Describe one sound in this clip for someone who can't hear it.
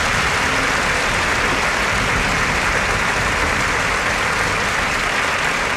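A radio hisses with loud, steady static.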